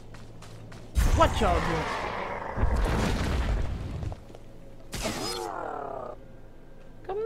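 Energy weapons hum and clash in a fight.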